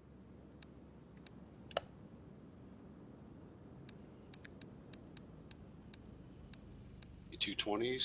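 Short electronic clicks tick as a menu selection moves.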